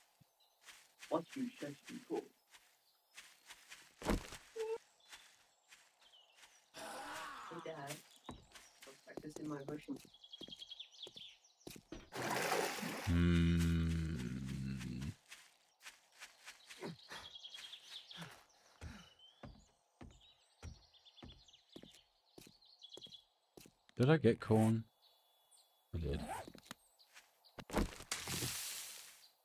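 Footsteps crunch over dirt and gravel.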